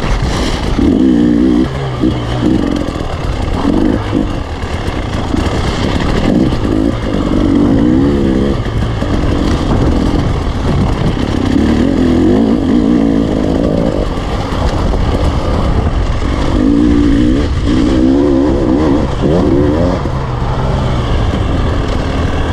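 Tyres crunch over loose gravel and rocks.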